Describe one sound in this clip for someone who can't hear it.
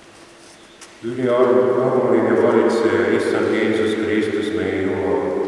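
An elderly man reads aloud clearly into a microphone in a large echoing hall.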